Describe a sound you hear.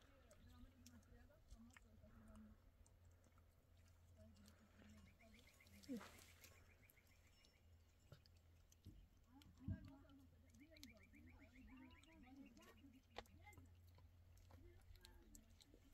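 A dog licks and chews food from a hand.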